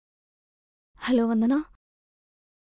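A young woman speaks briefly on a phone.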